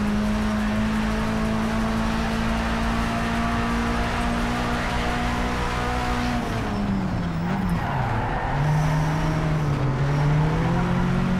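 A racing car engine roars steadily at high speed, then drops in pitch as the car brakes and rises again.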